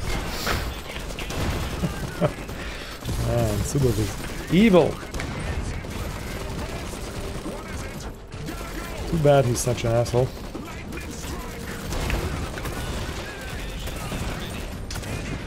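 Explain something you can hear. Heavy guns fire and explosions boom in a battle.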